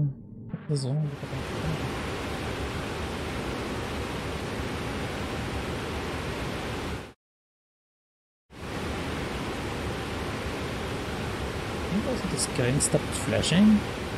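Water pours and rushes steadily nearby.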